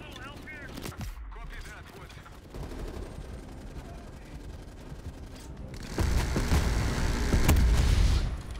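Gunshots crack out now and then.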